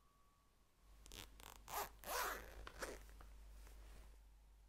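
Small objects click and rustle in a person's hands.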